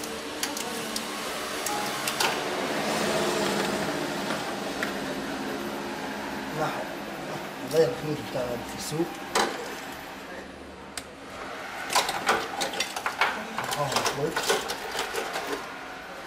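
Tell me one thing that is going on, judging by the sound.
Metal tools click and clink against engine parts.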